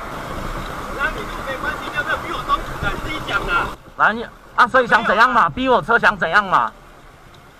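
A man shouts angrily up close.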